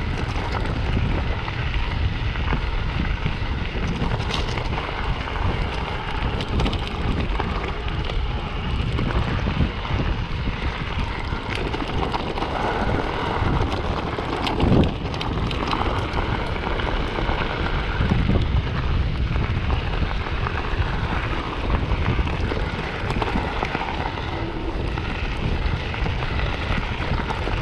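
A bicycle frame rattles and clicks over bumps.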